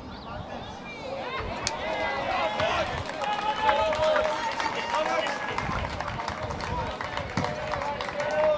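A crowd of men and women cheers and talks at a distance outdoors.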